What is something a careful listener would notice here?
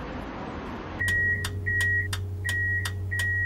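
A warning signal beeps in quick repeated pulses inside a tram's cab.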